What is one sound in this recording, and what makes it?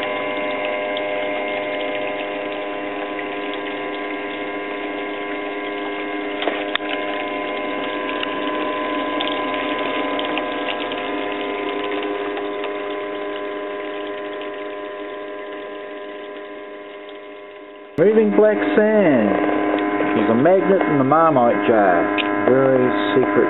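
Water runs and splashes steadily down a sluice.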